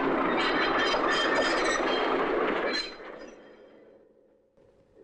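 A train's wheels clatter and screech loudly along the rails, then fade.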